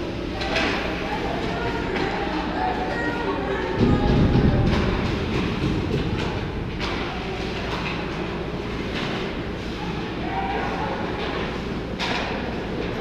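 Skate blades scrape across the ice in a large echoing rink.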